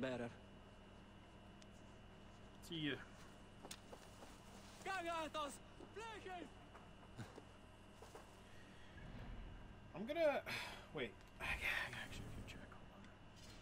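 A young man talks casually into a microphone, in short bursts.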